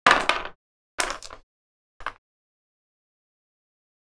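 Dice clatter across a board.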